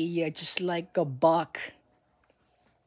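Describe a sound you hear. A young man speaks close up, with animation.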